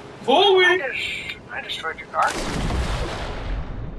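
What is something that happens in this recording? Water splashes loudly as a body plunges into the sea.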